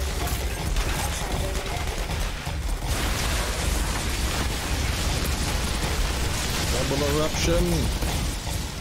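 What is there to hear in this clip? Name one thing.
Gunfire bursts rapidly and loudly.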